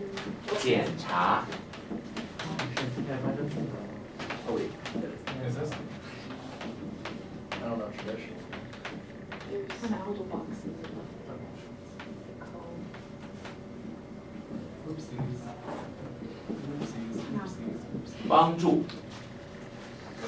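Young men and women talk and chatter.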